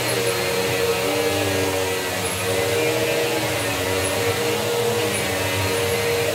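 A vacuum cleaner runs with a steady, loud hum nearby.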